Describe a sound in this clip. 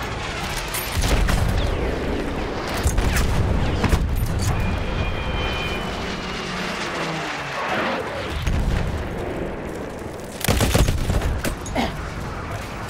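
Rifle shots crack loudly, one at a time.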